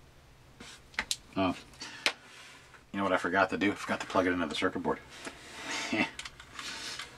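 A hollow plastic model knocks and rattles as it is picked up from a table.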